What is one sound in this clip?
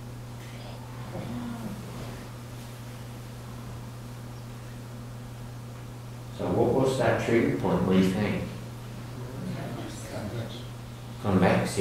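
A man speaks through a microphone with pauses.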